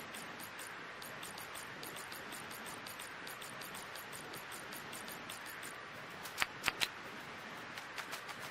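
Soft menu clicks tick quickly, over and over.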